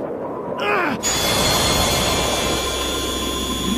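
A magical energy burst swells into a loud, steady hum.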